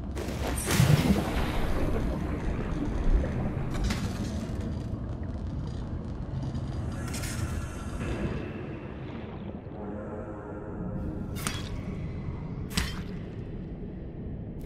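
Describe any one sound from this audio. Deep underwater rumbling murmurs steadily.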